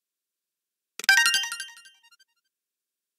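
A bright chime rings out as a game menu option is confirmed, then quickly fades.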